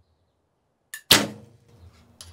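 A bowstring snaps sharply as an arrow is released.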